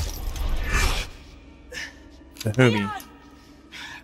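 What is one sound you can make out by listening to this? A man groans with strain close by.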